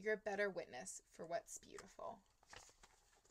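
A young woman reads aloud calmly, close by.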